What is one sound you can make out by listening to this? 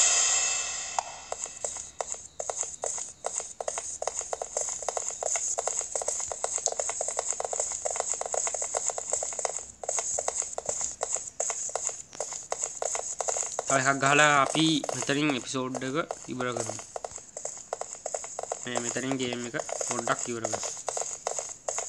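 Quick footsteps patter on a wooden floor.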